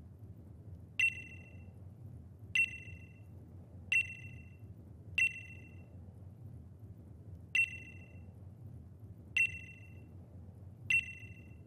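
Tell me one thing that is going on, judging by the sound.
A short, bright chime sounds again and again at a steady pace.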